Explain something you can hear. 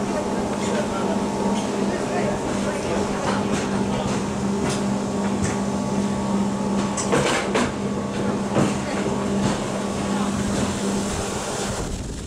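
A cable lift's machinery hums steadily.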